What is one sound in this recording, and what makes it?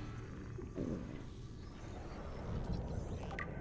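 A blade swishes through the air with a sharp slash.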